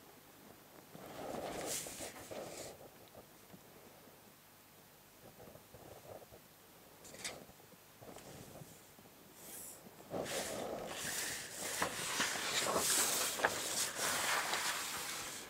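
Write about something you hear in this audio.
A plastic set square scrapes across paper.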